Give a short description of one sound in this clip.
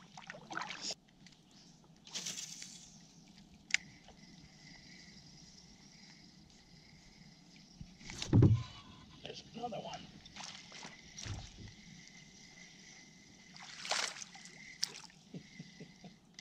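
A fishing reel whirs and clicks as line is wound in close by.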